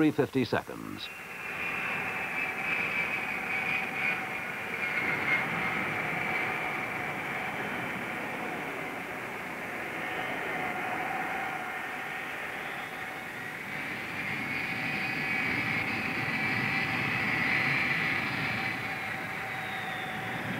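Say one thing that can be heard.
Jet engines whine and roar steadily as airliners taxi past.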